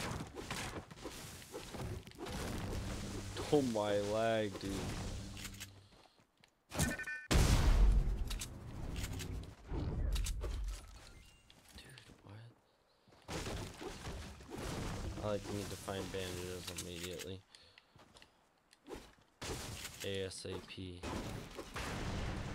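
A pickaxe strikes wood and bushes with sharp thuds.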